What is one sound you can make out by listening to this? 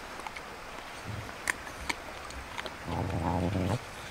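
A young woman chews crunchy food close by.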